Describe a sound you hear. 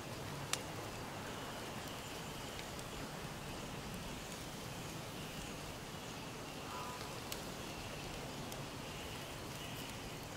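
A steady breeze rustles through forest trees.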